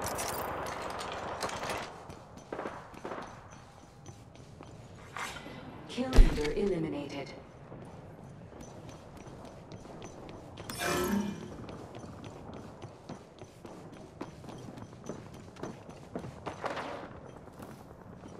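Footsteps run quickly across hard ground.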